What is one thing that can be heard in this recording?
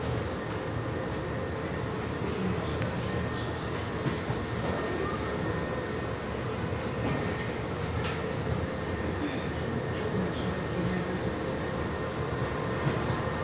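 A subway train rumbles and rattles steadily along the track.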